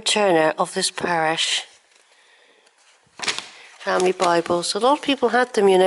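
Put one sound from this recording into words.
Paper pages of a book rustle as they are turned.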